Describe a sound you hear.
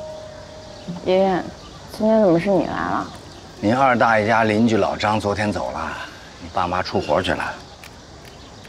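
An elderly man speaks calmly and quietly, close by.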